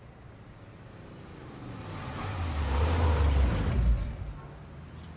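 A car engine rumbles and roars, then fades.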